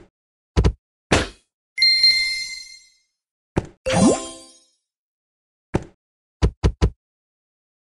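Cartoon blocks pop and burst with bright chimes as they clear.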